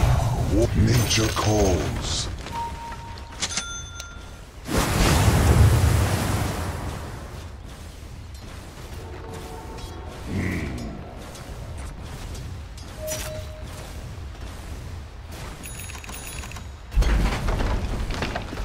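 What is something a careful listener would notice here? Fantasy battle sound effects burst and clash with magical whooshes.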